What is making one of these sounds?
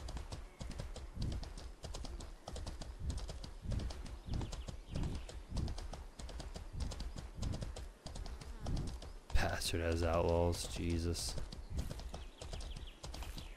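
Horse hooves thud rhythmically at a gallop.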